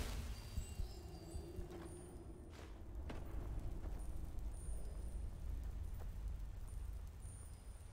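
Magic crackles and hums softly.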